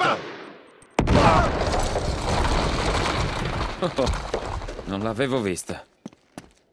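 Footsteps run over gravel and stone.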